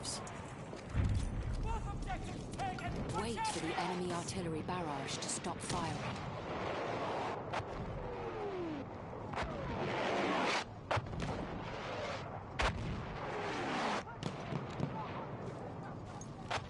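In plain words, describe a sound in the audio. Artillery shells explode with heavy booms.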